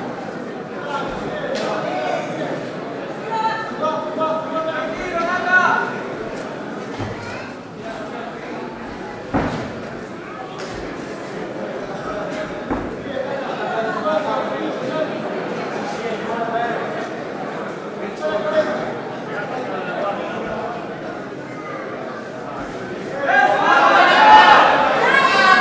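A crowd of men shouts and cheers loudly nearby, growing louder at the end.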